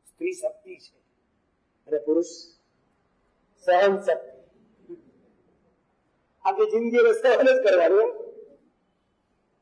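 An elderly man speaks calmly into a nearby microphone, in short phrases with pauses.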